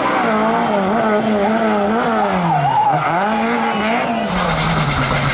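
A car engine revs hard, rising and falling as the car drifts.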